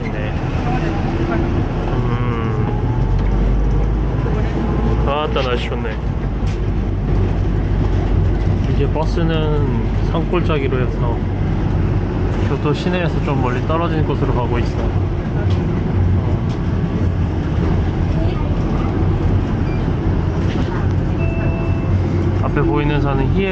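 A bus drives along, heard from inside.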